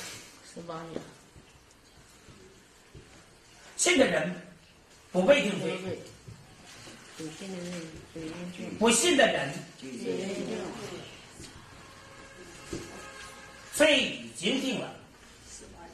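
A man speaks loudly in short bursts, as if lecturing.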